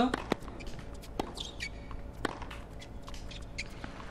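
A tennis ball is struck with a racket.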